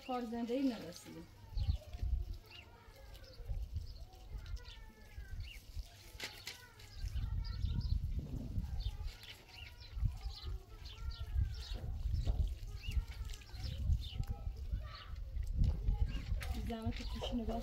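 Water from a hose splashes onto dry soil.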